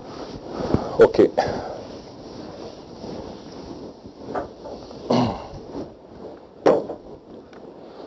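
A man speaks calmly, heard through a microphone.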